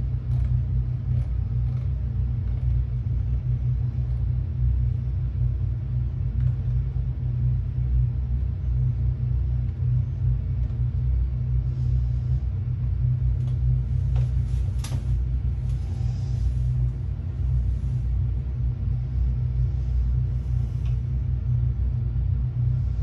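A steady low engine drone rumbles from a flight simulator's speakers.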